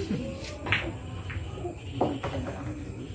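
Billiard balls clack together on a pool table.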